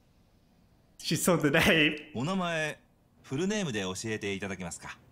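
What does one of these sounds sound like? A middle-aged man asks a question calmly, close by.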